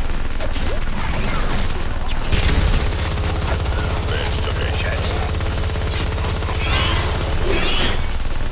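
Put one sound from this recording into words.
Game spells whoosh and crackle.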